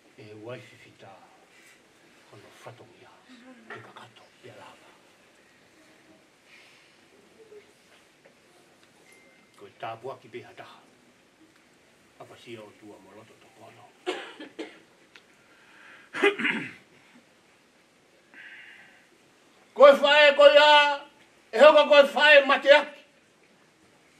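An older man speaks slowly and earnestly into a microphone, with pauses and a few drawn-out, sung-like phrases.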